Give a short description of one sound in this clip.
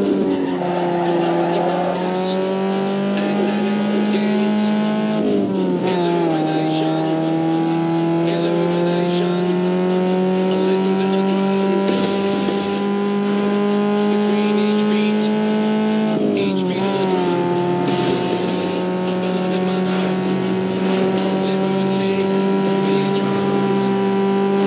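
A car engine revs hard and climbs in pitch, dropping briefly at each gear change.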